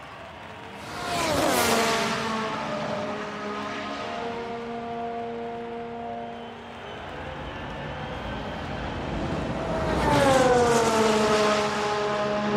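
A racing car roars past close by, its pitch dropping as it goes.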